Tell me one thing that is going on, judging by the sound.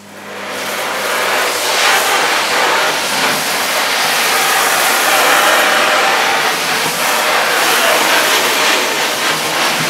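A vacuum cleaner head scrapes and sucks up grit from a hard floor.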